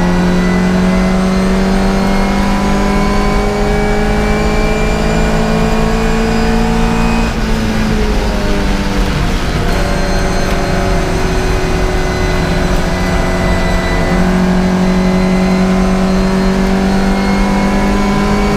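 A racing car engine roars at full throttle from inside the cockpit, its pitch climbing with a brief dip at a gear change.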